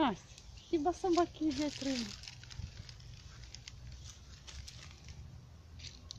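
A small dog rustles through dry leaves and grass.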